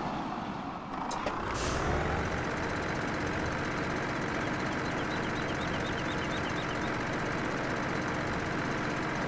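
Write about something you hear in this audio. A heavy truck engine roars as the truck drives along.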